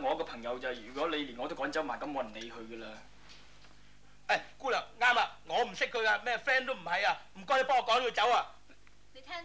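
A middle-aged man talks with feeling, close by.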